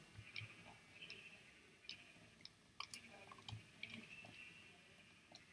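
Sheep bleat nearby.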